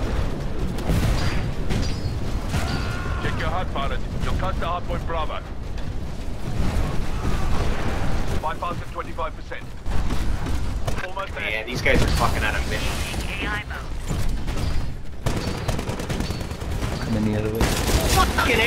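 Heavy gunfire bursts out in rapid shots.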